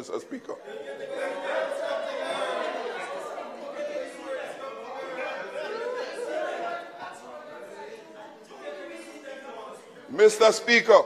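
Several people murmur and talk over one another in the background.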